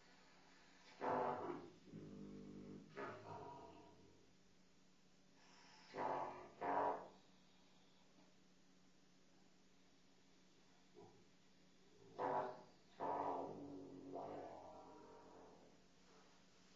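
A muted trumpet plays short, breathy bursts of notes.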